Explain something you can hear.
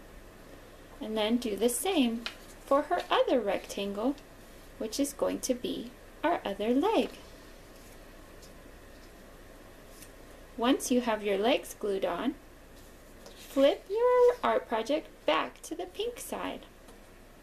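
A young girl talks calmly close by, in short bursts.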